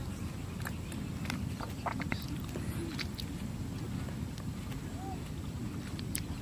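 Birds chirp in the distance.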